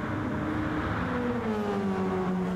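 A racing car engine drops in pitch as the car slows.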